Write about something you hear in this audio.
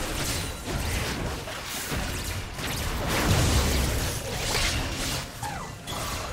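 Magic blasts and weapon hits crackle and thud in a fast fight.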